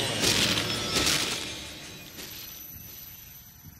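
Wet flesh tears and squelches loudly.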